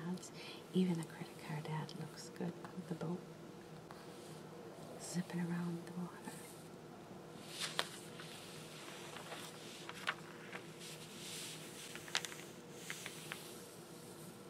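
Fingertips slide and tap over glossy magazine paper close up.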